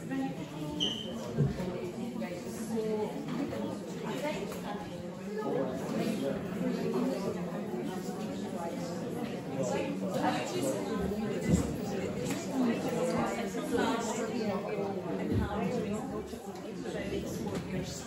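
A woman speaks with animation in an echoing hall.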